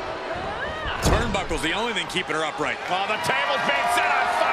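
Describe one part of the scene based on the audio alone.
Heavy thuds of bodies and blows land on a wrestling ring.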